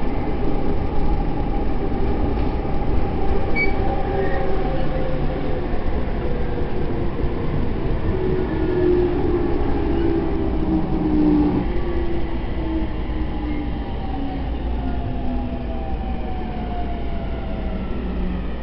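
Train wheels hum and whine with slowly shifting pitch.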